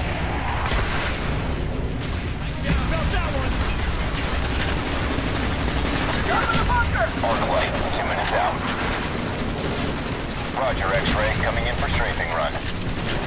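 Explosions boom and rumble in a game.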